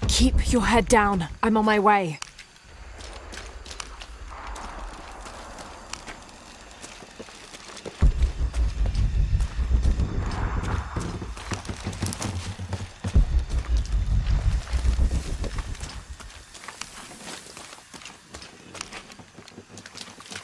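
Footsteps run over stone ground.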